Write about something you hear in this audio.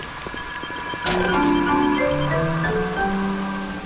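A machine plays a quick run of rising electronic tones.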